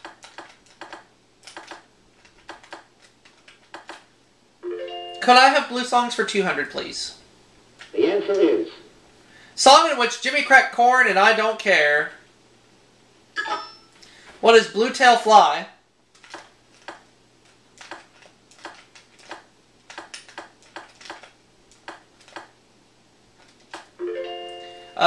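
Short electronic blips tick in quick succession.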